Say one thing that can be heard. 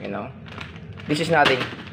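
A plastic packet crinkles in a hand.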